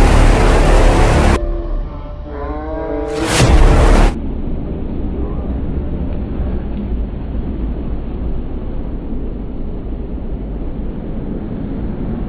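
A car engine hums as the car drives by.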